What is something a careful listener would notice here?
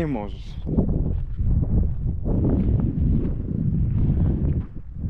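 Wind rumbles and buffets against the microphone outdoors.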